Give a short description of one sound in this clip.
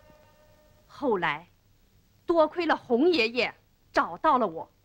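A young boy speaks loudly and with feeling, close by.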